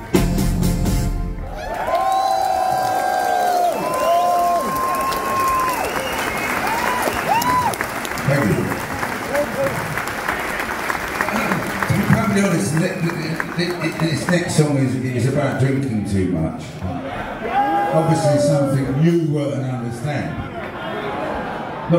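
A band plays loudly through speakers in a large hall.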